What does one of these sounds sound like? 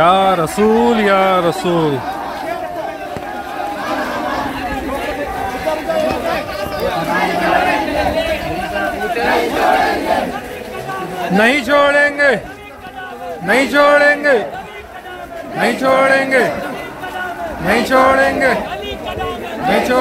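A crowd murmurs and talks.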